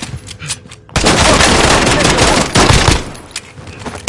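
Pistol shots ring out in quick succession.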